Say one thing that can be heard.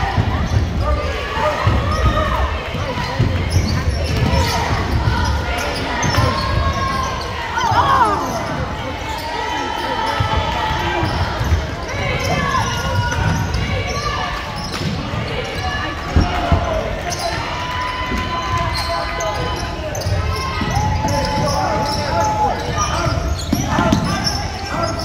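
A crowd chatters and calls out in a large echoing gym.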